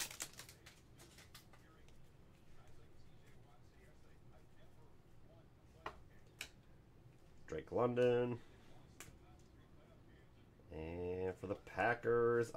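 Trading cards click and slide against each other as they are shuffled.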